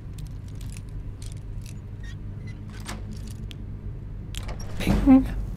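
A metal lock pick scrapes and clicks inside a lock.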